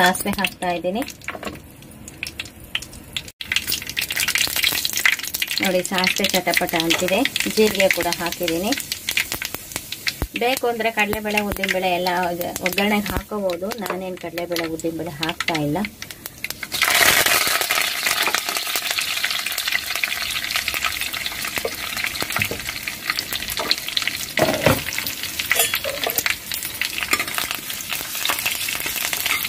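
Seeds crackle and sizzle in hot oil.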